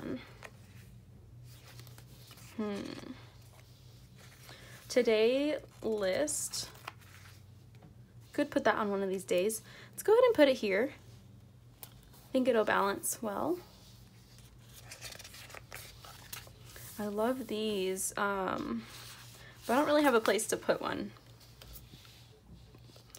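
Paper rustles and crinkles as sticker sheets are handled.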